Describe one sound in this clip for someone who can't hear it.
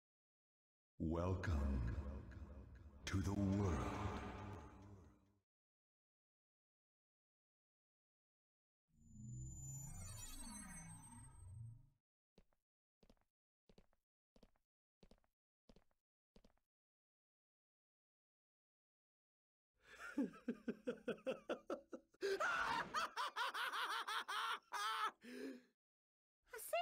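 A young man talks with animation into a microphone.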